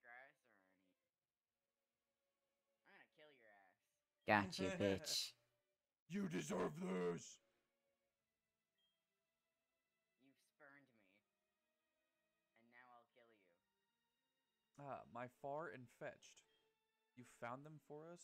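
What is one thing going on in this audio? A young man talks animatedly, close to a microphone, in short bursts.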